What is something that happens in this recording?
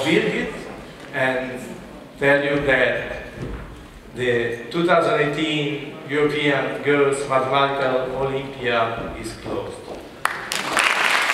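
A man speaks calmly over a loudspeaker in a large echoing hall.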